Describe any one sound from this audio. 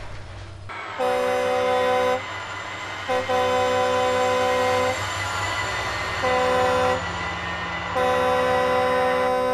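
A train horn blows in several long blasts.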